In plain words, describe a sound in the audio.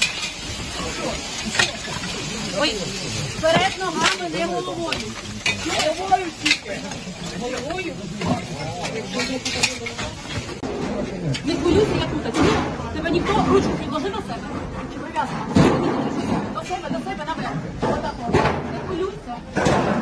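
Men talk and call to each other close by.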